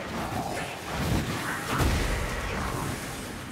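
A fire spell bursts with a fiery whoosh and crackle.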